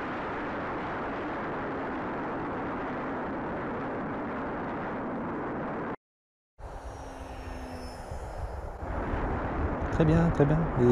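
Wind rushes and buffets past a fast-flying drone.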